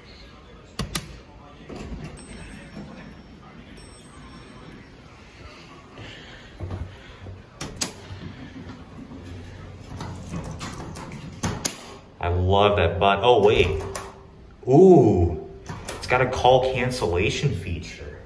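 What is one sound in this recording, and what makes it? A finger clicks an elevator button.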